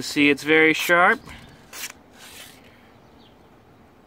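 A knife blade slices through a sheet of paper.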